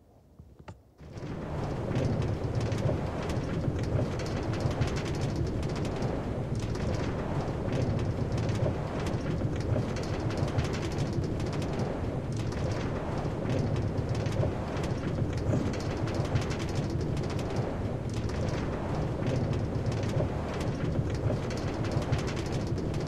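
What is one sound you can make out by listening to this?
A minecart rumbles as it rolls along rails.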